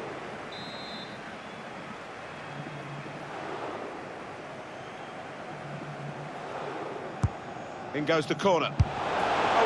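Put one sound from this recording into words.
A large crowd murmurs and cheers in a stadium.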